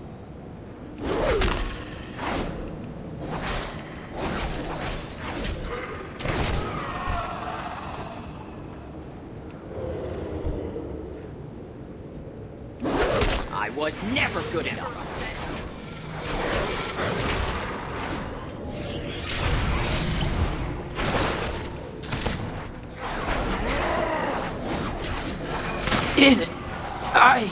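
Game swords slash and strike in quick bursts.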